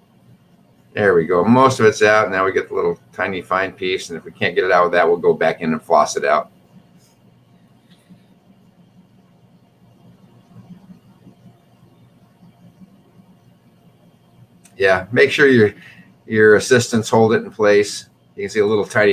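An elderly man talks calmly over an online call.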